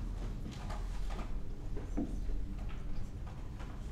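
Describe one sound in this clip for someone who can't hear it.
A woman talks quietly near a microphone.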